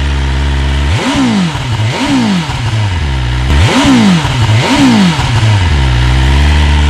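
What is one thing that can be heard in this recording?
A motorcycle engine revs sharply several times.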